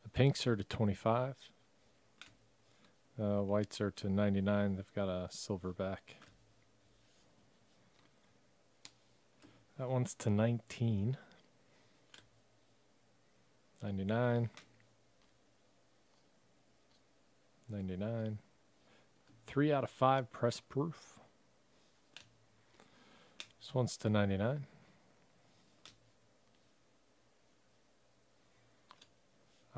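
Trading cards slide and rustle softly as hands flip through a stack.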